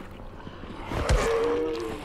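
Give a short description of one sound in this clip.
A weapon strikes a zombie with a heavy blow.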